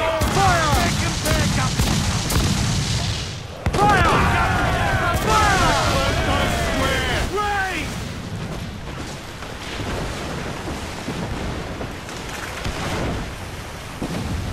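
Waves rush and roar steadily.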